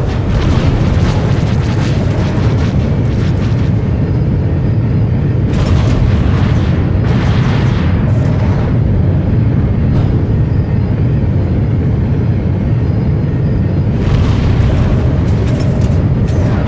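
A spaceship engine rumbles steadily and deeply.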